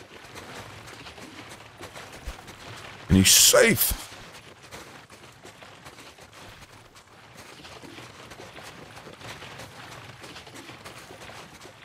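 Footsteps crunch over snow and gravel.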